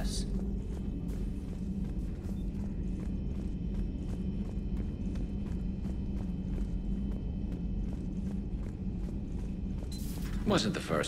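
Footsteps clank steadily on a metal floor.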